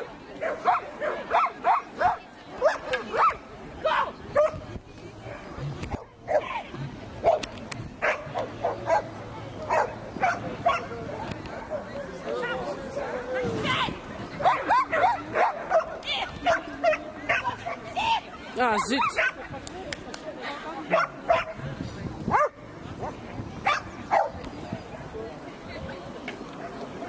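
A crowd of onlookers chatters in the background.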